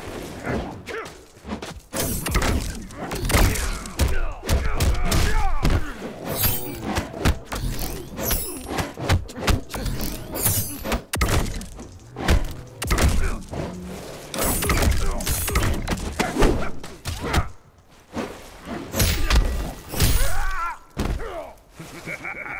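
Fighters in a video game punch and kick with heavy thuds and slashes.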